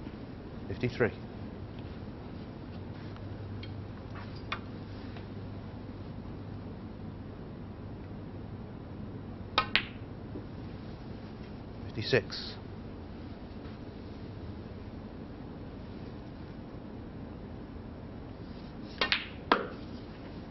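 Snooker balls click together on a table.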